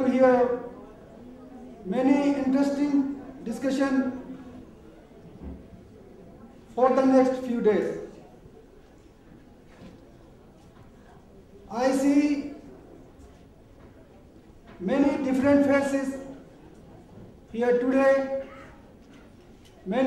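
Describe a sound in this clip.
A man speaks slowly through a microphone and loudspeakers, in short phrases with pauses.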